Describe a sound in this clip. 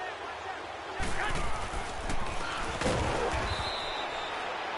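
Football players collide with heavy thuds.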